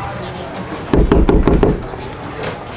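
A hand knocks on a wooden door.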